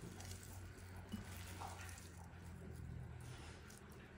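Fingers squish and knead raw meat in a bowl.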